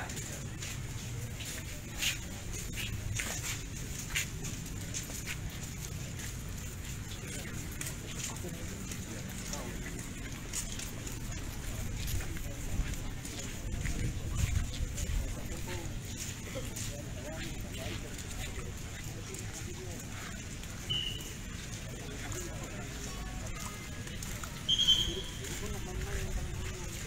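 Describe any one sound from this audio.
Footsteps scuff on pavement as a group walks outdoors.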